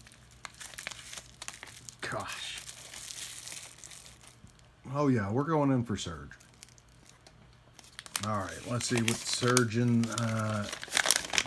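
Paper rustles and crackles as it is handled.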